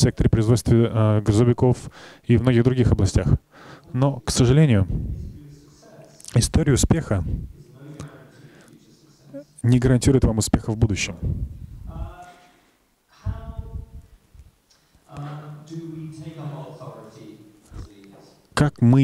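A man speaks steadily into a microphone over loudspeakers in a large room.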